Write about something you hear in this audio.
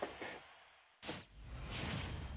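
A video game plays a sudden whooshing boom.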